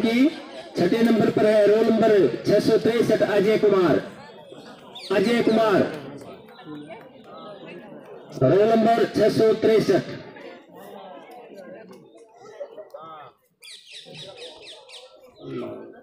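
A man speaks with animation into a microphone over a loudspeaker, in bursts with pauses.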